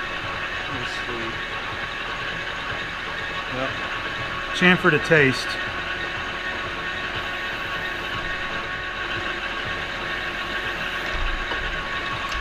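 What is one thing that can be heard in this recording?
A metal lathe spins with a steady whirring hum.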